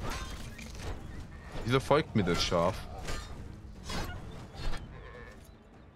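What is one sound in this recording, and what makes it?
Sword blows strike with sharp thuds.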